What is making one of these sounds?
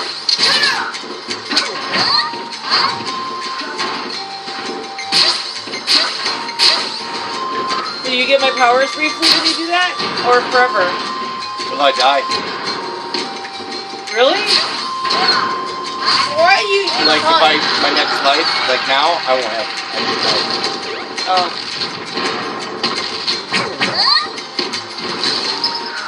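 Video game hits and blasts crack again and again.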